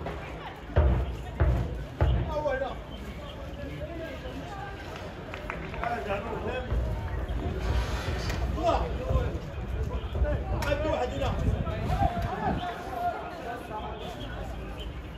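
Players shout to each other across an open outdoor pitch.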